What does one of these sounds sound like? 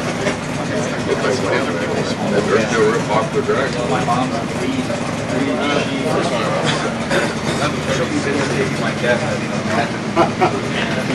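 Men talk nearby in the background.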